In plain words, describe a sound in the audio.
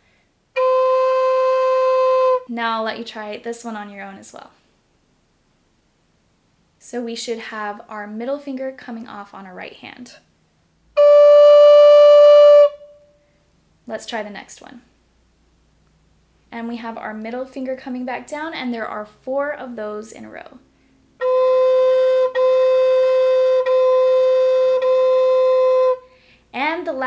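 A wooden flute plays long, steady held notes up close.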